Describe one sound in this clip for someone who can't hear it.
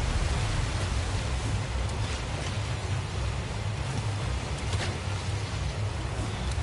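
Water churns and splashes in rough waves.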